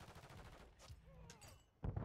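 A knife slashes with a swish.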